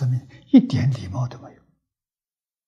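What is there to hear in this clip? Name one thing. An elderly man speaks calmly, as in a lecture.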